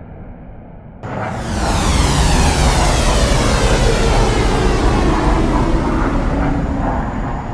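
Jet engines roar loudly as two aircraft fly close by.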